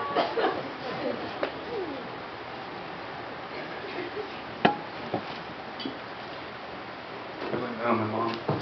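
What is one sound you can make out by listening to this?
Guests murmur and laugh.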